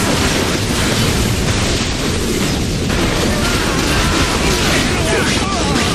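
Energy beams fire and crackle.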